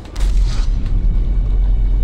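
A magical whoosh swirls up.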